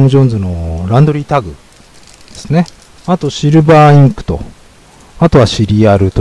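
Scissors snip through a foil pack.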